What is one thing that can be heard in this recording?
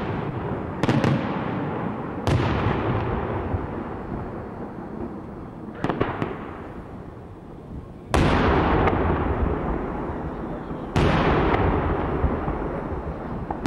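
Fireworks burst in the sky with loud booming bangs that echo and rumble across open hills.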